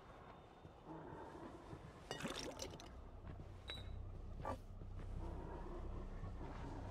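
Footsteps shuffle softly on a wooden floor.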